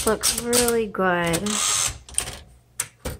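A typewriter carriage is pushed back with a ratcheting zip.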